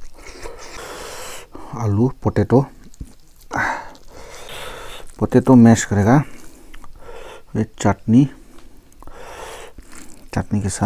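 Fingers squish and mix moist rice close up.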